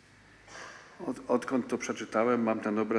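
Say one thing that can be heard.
An elderly man speaks calmly into a microphone, his voice echoing in a large hall.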